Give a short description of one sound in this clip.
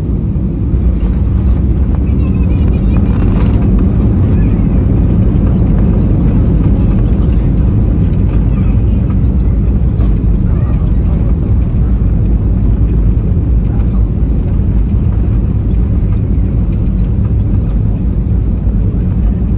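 Engines roar louder as the aircraft brakes on the runway.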